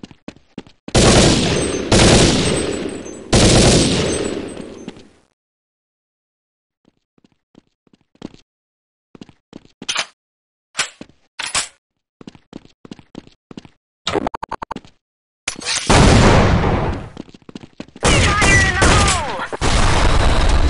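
A rifle fires loud shots that echo and fade.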